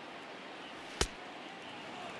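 A pitched baseball smacks sharply into a catcher's mitt.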